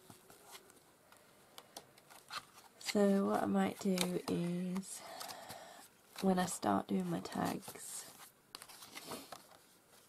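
Paper pages rustle and flap as they are turned.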